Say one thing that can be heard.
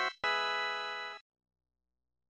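A video game sounds a short, bright electronic chime.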